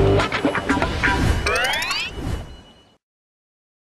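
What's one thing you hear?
A bright jingle plays with sparkling chimes.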